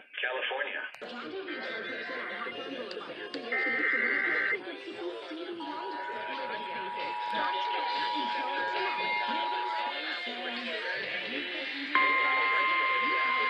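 A radio plays a voice reading out an announcement through a small loudspeaker.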